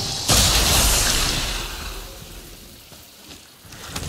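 Something shatters with a loud crash and debris scatters.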